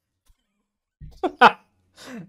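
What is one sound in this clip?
A man laughs loudly over an online call.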